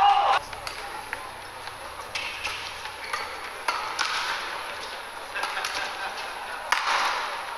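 Rackets strike a shuttlecock back and forth in a quick rally.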